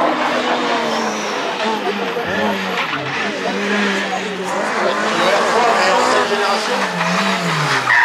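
A rally car engine roars and revs as the car speeds past, its pitch dropping with each gear change.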